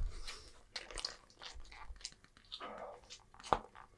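Chopsticks click against a wooden tray.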